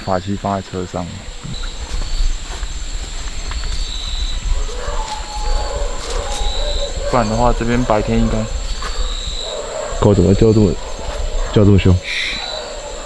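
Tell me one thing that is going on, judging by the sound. A young man speaks in a low, hushed voice close by.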